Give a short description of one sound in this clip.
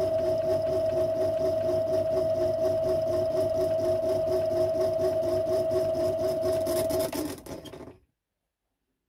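A lathe motor hums steadily and spins down to a stop.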